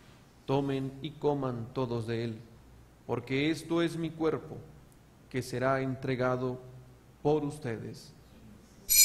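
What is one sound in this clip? A man chants slowly and calmly into a microphone.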